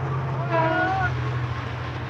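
A train rumbles past in the distance.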